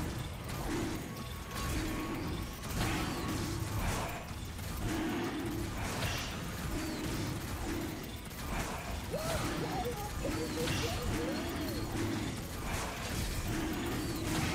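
Fantasy game combat effects crash and whoosh in quick, repeated bursts.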